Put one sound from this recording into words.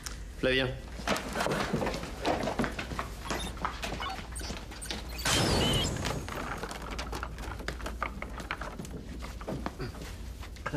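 A group of people laugh and cheer.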